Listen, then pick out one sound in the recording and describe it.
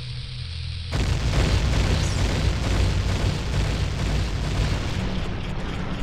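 A bomb explodes with a deep rumbling boom.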